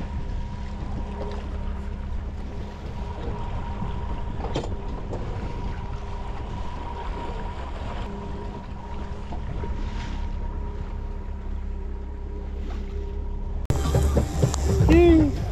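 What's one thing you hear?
Water splashes against the side of a boat.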